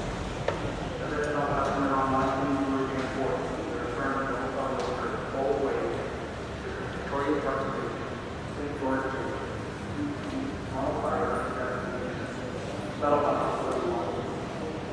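Young women chat with each other nearby.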